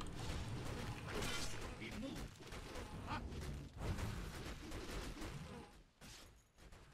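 Video game spell and combat effects crackle and clash.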